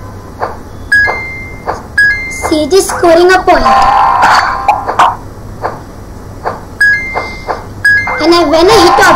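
Short electronic game chirps sound.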